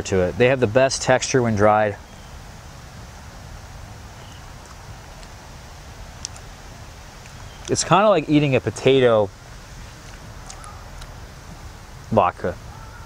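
A young man speaks calmly and close by into a clip-on microphone, in short bursts.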